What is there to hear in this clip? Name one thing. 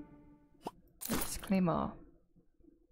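A game plays a sparkling chime as a reward bursts open.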